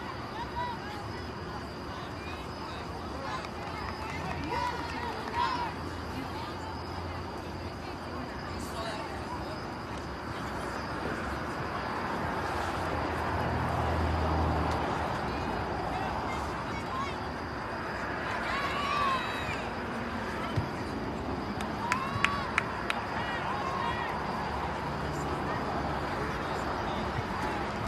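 A crowd of spectators murmurs and cheers nearby.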